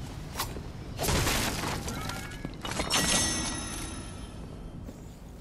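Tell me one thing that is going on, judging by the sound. A chest bursts open with a bright, ringing chime.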